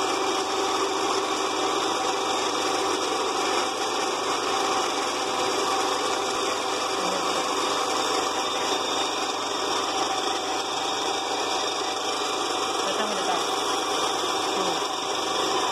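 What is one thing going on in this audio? A small metal piece grinds against a sanding belt.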